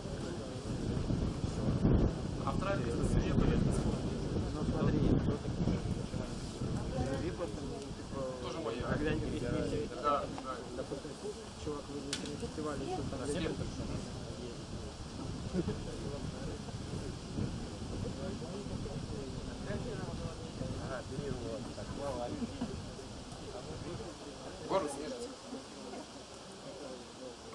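A middle-aged man speaks through a microphone and loudspeakers outdoors.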